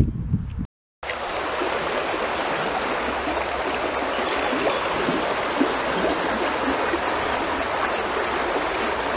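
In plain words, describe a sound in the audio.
Water rushes and gurgles steadily over stones.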